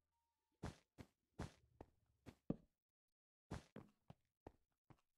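Short soft thuds of blocks being placed sound in quick succession.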